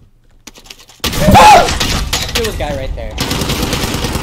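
Gunfire bursts loudly close by.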